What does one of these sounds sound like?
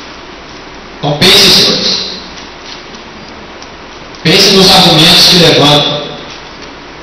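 A man speaks loudly into a microphone in a room with some echo.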